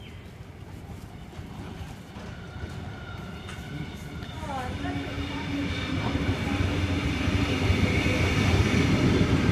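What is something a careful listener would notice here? An electric train rumbles closer, growing steadily louder.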